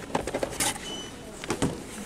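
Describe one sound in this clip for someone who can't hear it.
A hand knocks against stacked plastic bowls.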